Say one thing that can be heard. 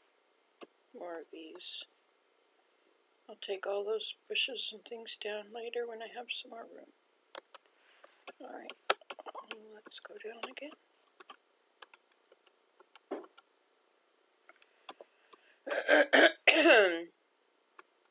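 An elderly woman talks calmly close to a microphone.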